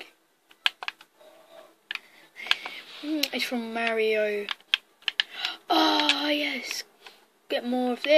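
A video game plays short clicking effects through a television speaker.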